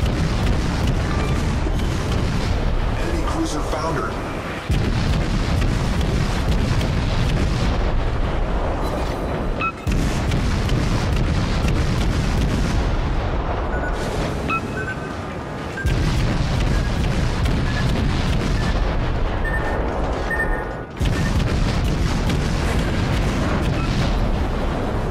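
Naval guns boom and shells explode in a steady barrage.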